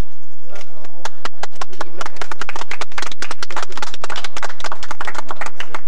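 A crowd applauds with brisk clapping.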